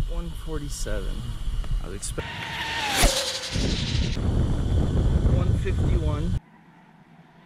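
A remote-control car's electric motor whines at high speed, close by.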